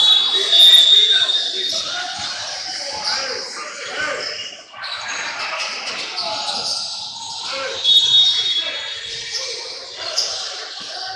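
Young men talk and call out in an echoing gym.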